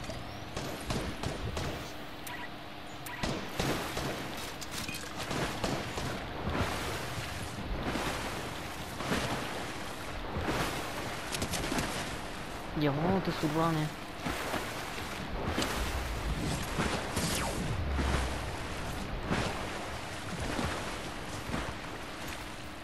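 A swimmer splashes through water with rhythmic strokes.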